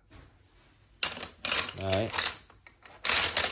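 Metal wrenches clatter and clink as a hand rummages through them.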